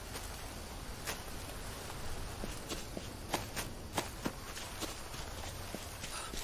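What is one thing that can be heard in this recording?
Footsteps rustle through leafy undergrowth.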